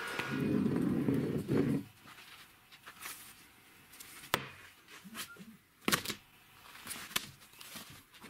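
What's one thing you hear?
A metal part knocks and clicks against a wooden bench.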